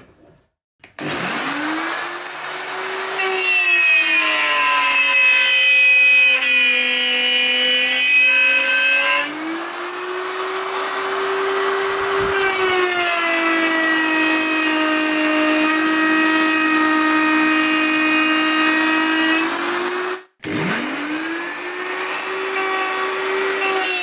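A plunge router whines at high speed as it cuts a groove in wood.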